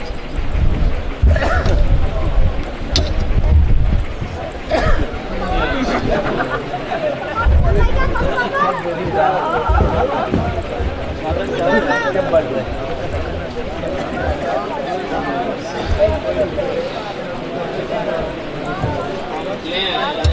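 A crowd of men talk over one another nearby.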